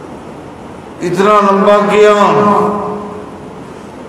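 A man chants a long, drawn-out phrase through a microphone.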